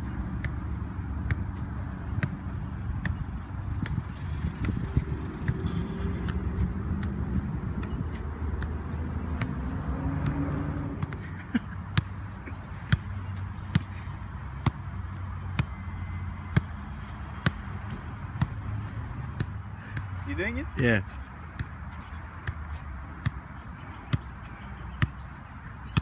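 A football is kicked again and again with steady, regular thumps.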